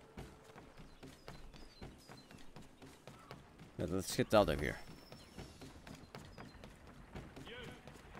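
Footsteps run quickly over wooden boards.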